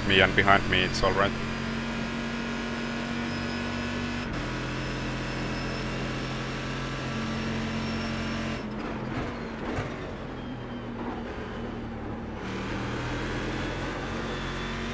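A racing car engine drones steadily, shifting pitch as the car changes gear.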